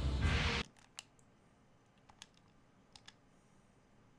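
Soft clicks tick as a menu opens.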